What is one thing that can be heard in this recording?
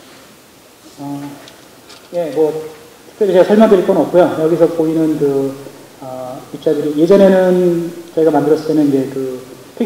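A young man speaks calmly into a microphone over a loudspeaker in a large hall.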